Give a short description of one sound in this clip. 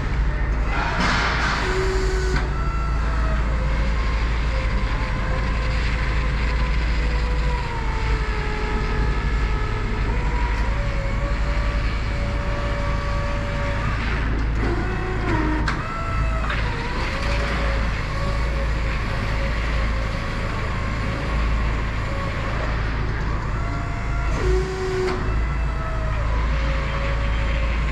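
An electric lift motor whirs steadily as the machine drives across a hard floor.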